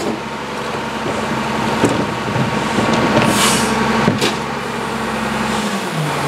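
A rear loader's compactor blade grinds through trash.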